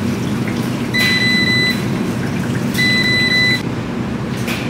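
A washing machine beeps twice.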